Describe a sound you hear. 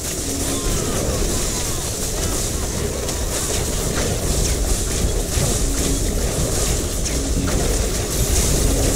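Video game explosions boom and crackle.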